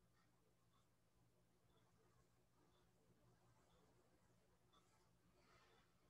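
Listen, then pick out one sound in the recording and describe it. A brush scrapes softly across a canvas.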